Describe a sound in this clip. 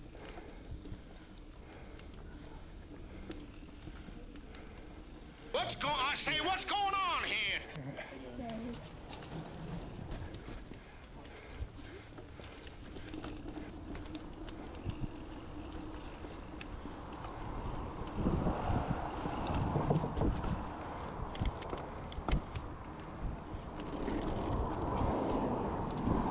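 Bicycle tyres crunch and rattle over a dirt trail.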